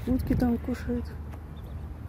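Waterbirds call.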